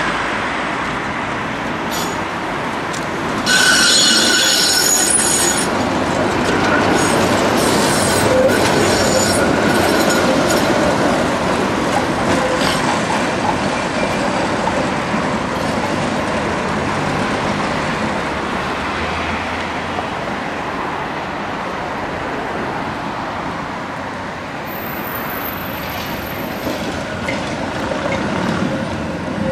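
Cars hum past on a nearby road.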